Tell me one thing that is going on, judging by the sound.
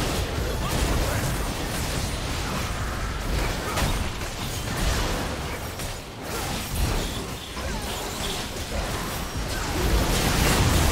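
Magic spells crackle and burst in a busy fight.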